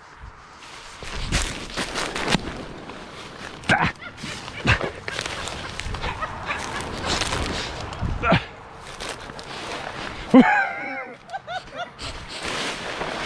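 Footsteps squelch and rustle through soft mud and brush.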